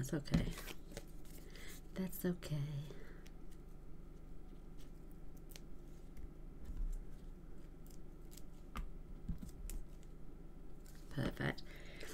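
Card stock rustles and taps as it is handled.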